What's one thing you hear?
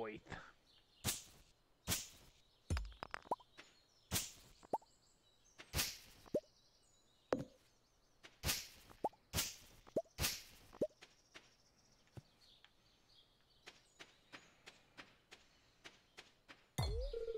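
Tools chop and swish through weeds in quick knocks.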